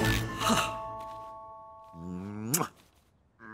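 A typewriter bell dings and rings on.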